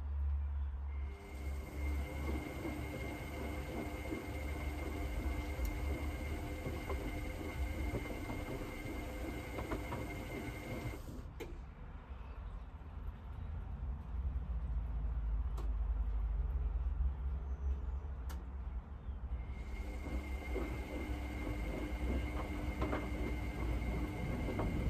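A washing machine motor whines steadily.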